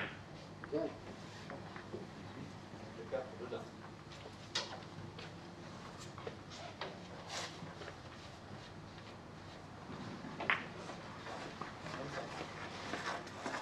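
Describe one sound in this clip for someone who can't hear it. Billiard balls click against each other at nearby tables.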